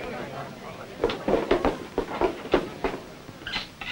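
An elderly man speaks on a stage.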